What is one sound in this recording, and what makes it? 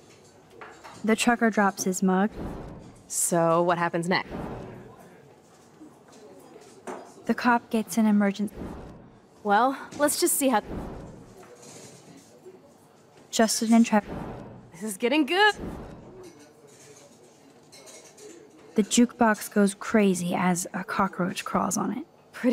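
A young woman speaks quietly and thoughtfully.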